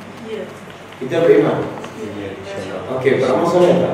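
A middle-aged man speaks calmly into a clip-on microphone.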